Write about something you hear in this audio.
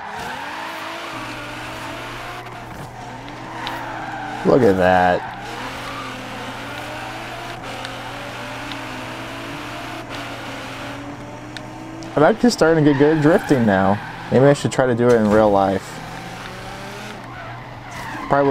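A sports car engine roars, its pitch rising and falling as the car speeds up and slows down.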